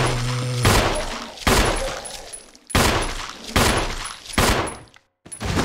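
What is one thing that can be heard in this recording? A pistol fires several loud shots that echo through a large hall.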